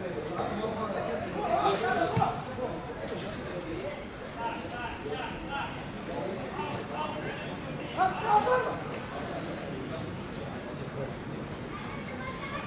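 Young men shout and call to each other across an open stadium.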